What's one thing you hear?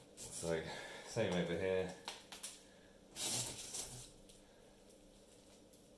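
A hand presses and rubs material onto a board with soft scuffing sounds.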